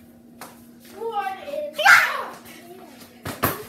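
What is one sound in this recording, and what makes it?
A young boy speaks with animation close by.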